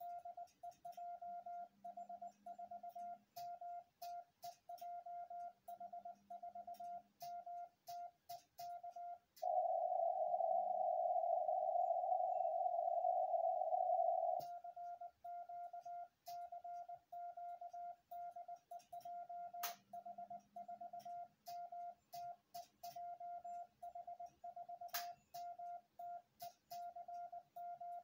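A telegraph key clicks under a finger.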